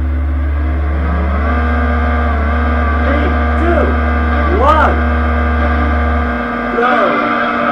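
A car engine idles and revs in short bursts.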